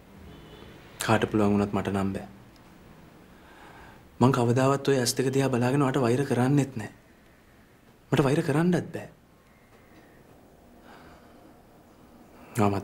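A young man speaks softly and pleadingly, close by.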